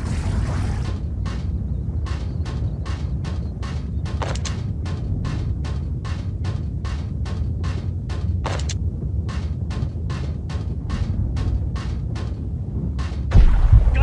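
Footsteps clang quickly on a metal grating.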